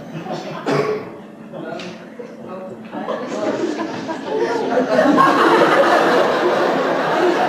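A guitar is strummed on stage.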